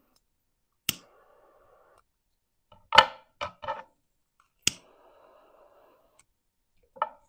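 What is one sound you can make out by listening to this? A butane torch hisses in short bursts.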